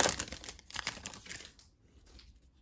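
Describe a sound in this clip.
A foil wrapper crinkles and rustles.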